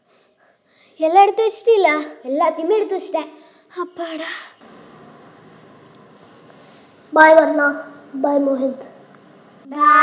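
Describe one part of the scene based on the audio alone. A young girl speaks with animation, close by.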